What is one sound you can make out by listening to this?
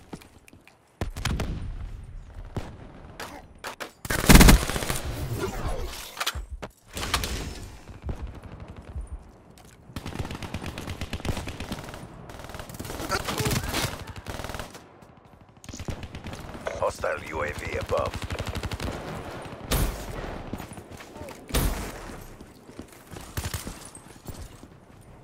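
Automatic gunfire rattles in a video game.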